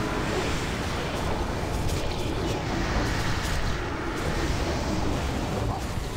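Spell effects and weapon hits clash rapidly in a game battle.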